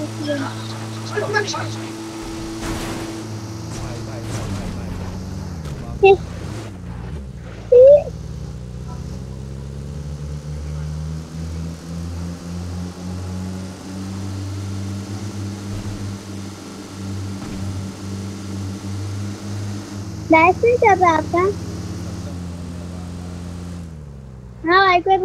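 A vehicle engine hums steadily as it drives.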